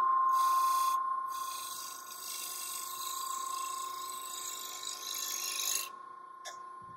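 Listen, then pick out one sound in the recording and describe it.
A gouge scrapes and shaves spinning wood.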